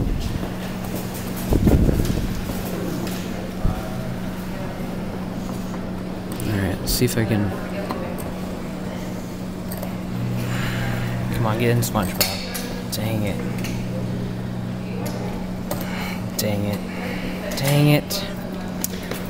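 A claw machine hums steadily.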